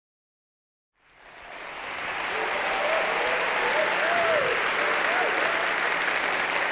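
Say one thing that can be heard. A large audience applauds loudly, swelling in from silence.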